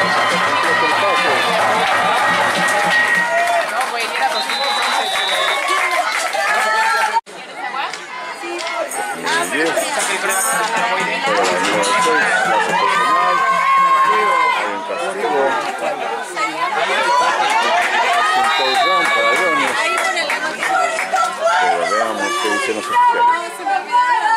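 A crowd of spectators talks and cheers nearby outdoors.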